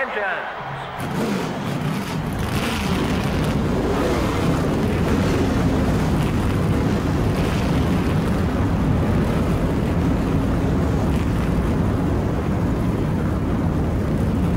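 Many race car engines roar loudly together.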